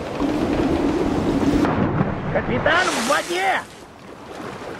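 Something splashes into water after a dive.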